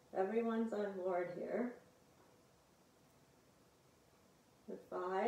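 A woman speaks calmly and slowly, giving instructions.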